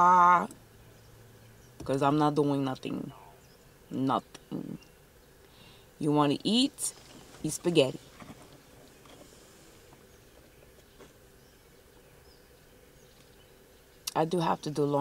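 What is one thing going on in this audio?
A young woman talks with animation close by, with pauses.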